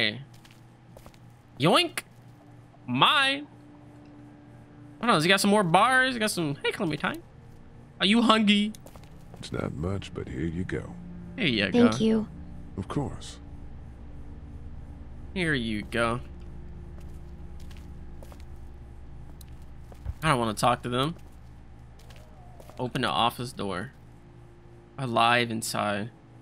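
A young man talks animatedly into a close microphone, in short bursts.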